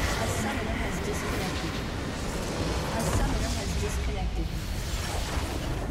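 A huge structure explodes with a deep rumbling crash.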